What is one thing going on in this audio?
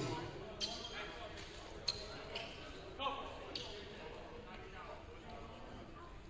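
Voices murmur and call out in a large echoing gym.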